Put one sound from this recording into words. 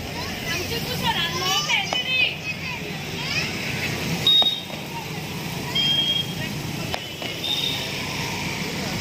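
Fireworks whistle and crackle overhead.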